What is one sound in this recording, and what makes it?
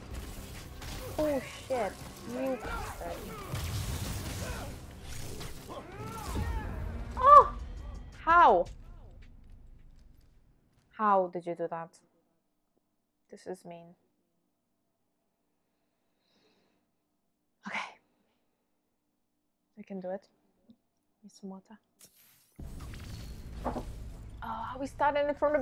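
A young woman talks animatedly into a nearby microphone.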